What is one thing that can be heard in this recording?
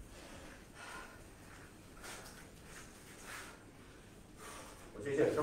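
Bare feet shuffle on a mat.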